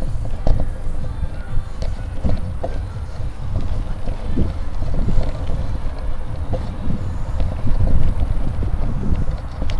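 Wind buffets loudly.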